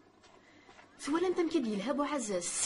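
Several women talk loudly and excitedly, close by.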